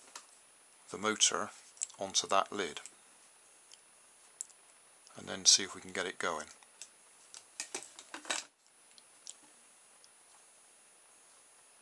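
Plastic toy parts click and rattle as they are handled.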